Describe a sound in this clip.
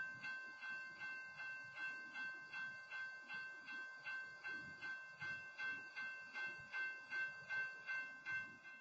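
A freight train rolls past with a steady rhythmic clatter of wheels over the rail joints.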